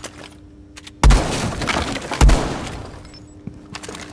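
A wall bursts apart with loud blasts, and debris clatters down.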